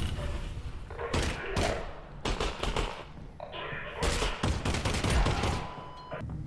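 A pistol fires several sharp shots at close range.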